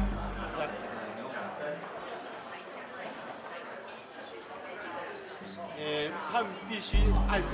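A young man speaks into a microphone, heard through a loudspeaker in an echoing room.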